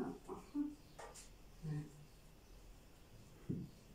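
A rolling pin rolls softly over dough.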